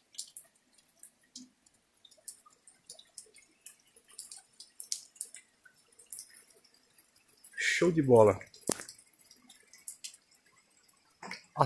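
Water drips from a rock overhang onto stone.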